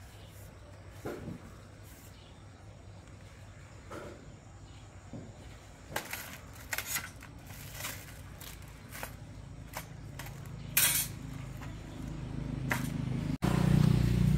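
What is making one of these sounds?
Sandpaper rasps against a metal plate in short strokes.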